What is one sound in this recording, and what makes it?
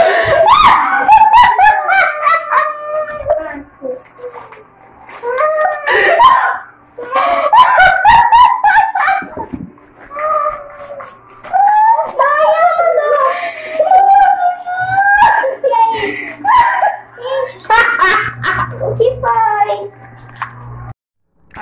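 A young woman laughs loudly and close by.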